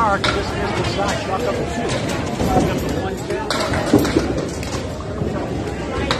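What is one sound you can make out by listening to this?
Pins crash and clatter in the distance.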